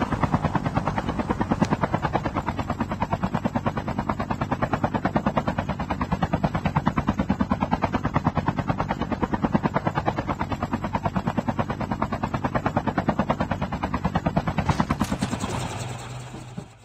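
A helicopter's rotor thumps rapidly close by.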